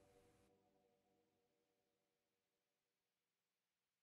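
An electric guitar chord rings out and slowly fades.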